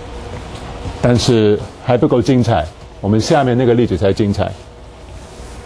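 A middle-aged man speaks calmly through a clip-on microphone.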